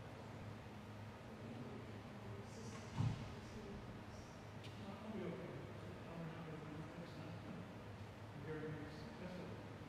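Footsteps walk slowly down an aisle in a large echoing hall.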